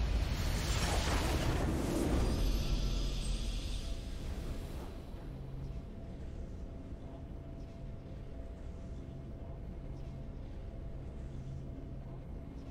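A triumphant game fanfare plays and fades out.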